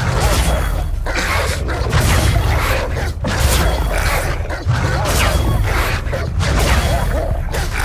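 A magic shield hums and crackles with electricity.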